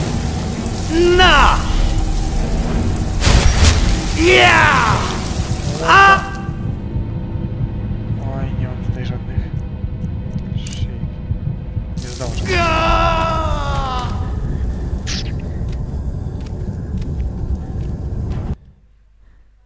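Magic crackles and hums steadily.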